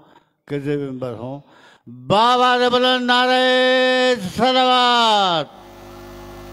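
A man chants loudly and melodically through a microphone.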